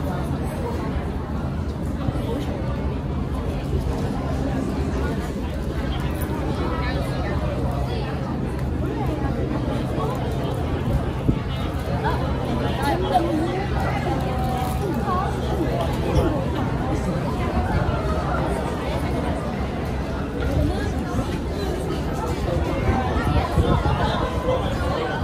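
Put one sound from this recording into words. Young women chat and laugh nearby, outdoors.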